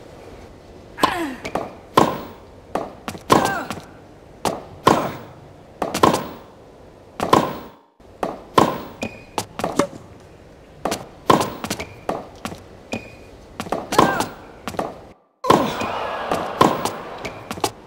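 A tennis racket strikes a ball with sharp pops, again and again.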